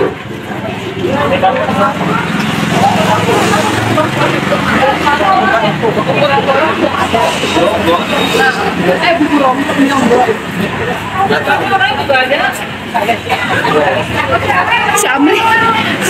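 A crowd of people chatter as they walk along a street.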